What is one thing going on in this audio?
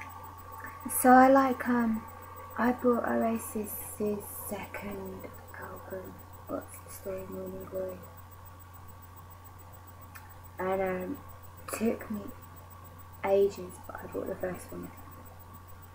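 A woman talks close to a microphone in a casual, animated way.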